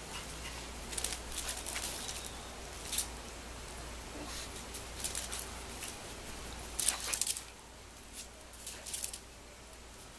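Puppies yip and whine playfully nearby.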